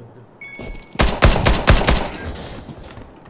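A rifle fires a short burst of shots.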